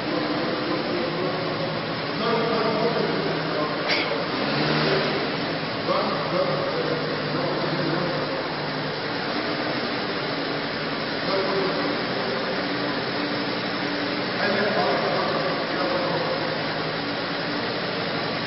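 A scooter engine runs as the scooter moves slowly in an echoing space.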